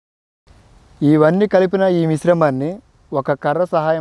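A man talks calmly.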